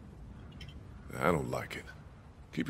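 A man speaks quietly and hesitantly, close by.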